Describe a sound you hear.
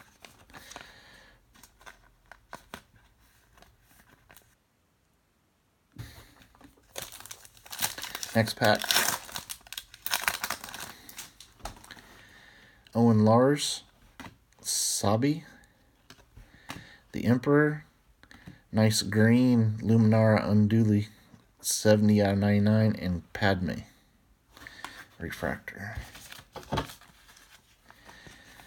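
Trading cards slide and flick against each other in hands.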